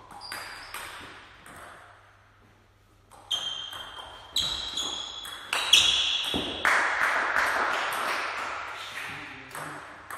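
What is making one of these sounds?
A table tennis ball clicks sharply back and forth off paddles and the table, echoing in a large hall.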